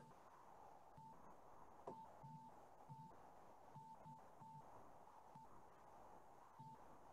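A young man speaks quietly over an online call.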